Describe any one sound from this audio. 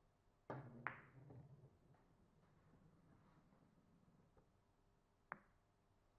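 Billiard balls roll across the cloth.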